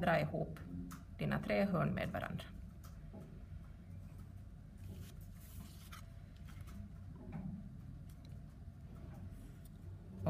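A plastic ruler slides and taps on paper.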